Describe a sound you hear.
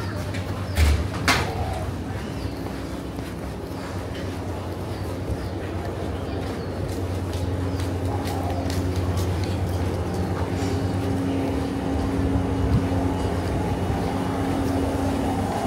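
Air conditioning units hum steadily nearby.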